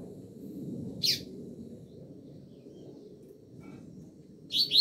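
A caged double-collared seedeater chirps.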